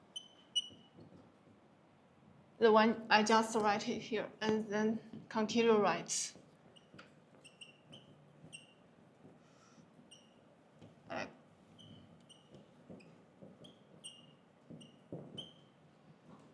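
A marker squeaks in short strokes on a whiteboard.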